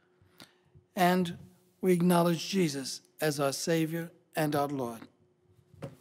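A man speaks calmly into a microphone, heard through a loudspeaker in a large echoing hall.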